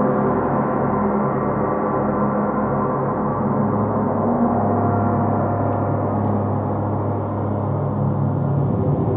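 A large gong drones and shimmers as a mallet plays it, its tones swelling and overlapping.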